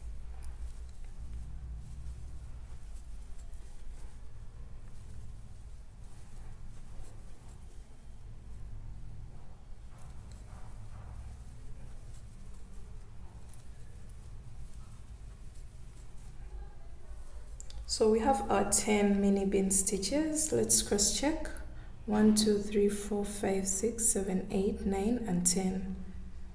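Yarn rustles softly as a crochet hook pulls it through stitches.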